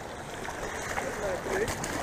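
A hooked fish splashes at the surface.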